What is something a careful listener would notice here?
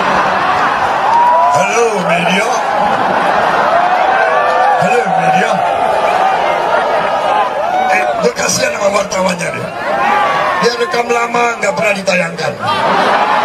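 A man speaks loudly into a microphone over loudspeakers.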